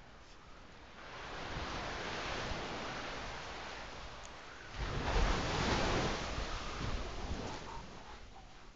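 Wind gusts outdoors.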